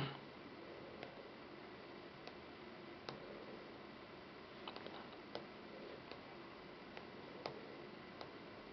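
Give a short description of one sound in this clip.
A finger taps lightly on a glass touchscreen.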